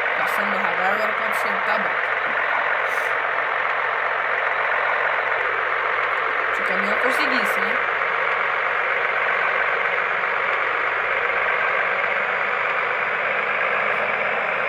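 A truck engine hums steadily while driving.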